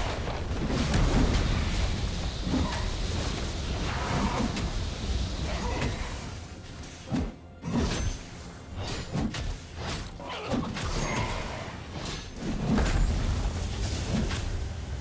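Weapons clash and strike in a game battle.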